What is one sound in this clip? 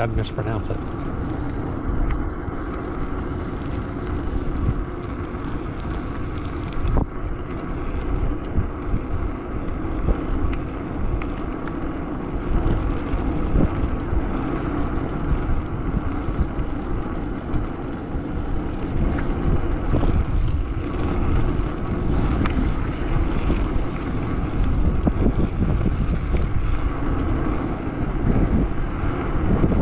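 Wind buffets the microphone loudly outdoors.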